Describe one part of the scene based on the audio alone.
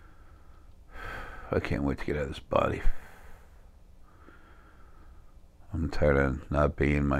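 An older man speaks calmly and closely into a clip-on microphone.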